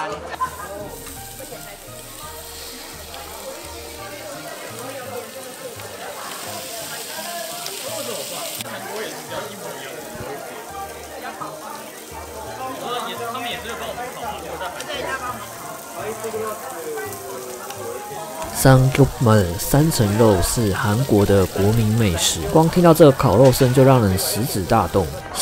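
Pork belly sizzles on a hot grill.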